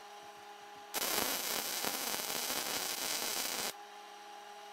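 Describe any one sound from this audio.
A welding arc crackles and sizzles loudly in short bursts.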